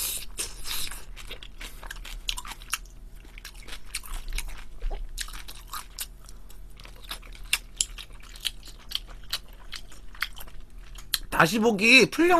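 A young man chews and smacks his lips close to a microphone.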